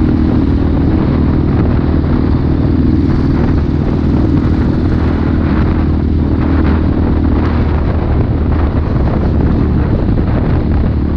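Wind rushes past loudly as a motorcycle rides.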